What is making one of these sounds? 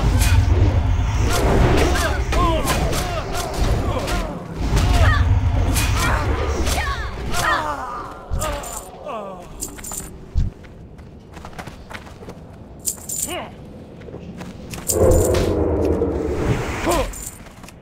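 Spells burst with a crackle.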